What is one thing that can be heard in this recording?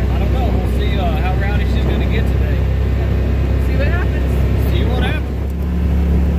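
A young man talks close by.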